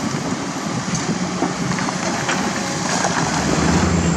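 A hydraulic excavator's diesel engine works.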